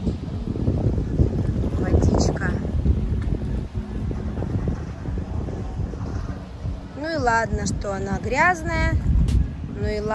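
Water laps gently against rocks close by.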